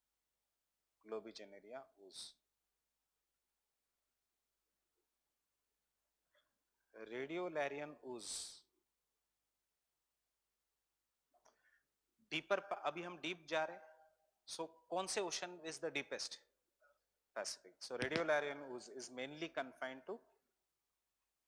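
A man speaks into a microphone in bursts, explaining calmly with pauses.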